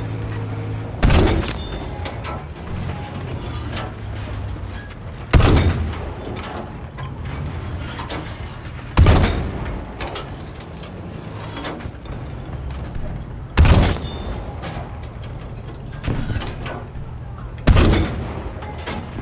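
A tank cannon fires with loud booming blasts that echo away.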